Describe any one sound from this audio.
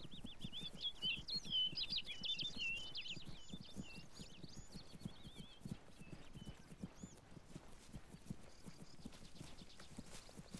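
Footsteps thud quickly through grass.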